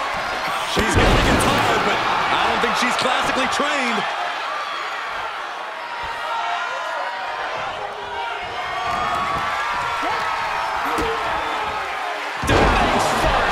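A body slams onto the ring mat with a heavy thud.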